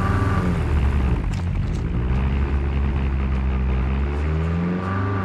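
A vehicle engine rumbles loudly.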